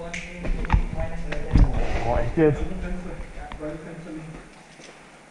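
Boots crunch on a gritty floor with heavy footsteps.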